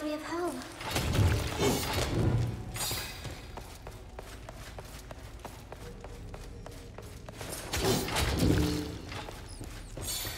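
Swords swing and strike hard in combat.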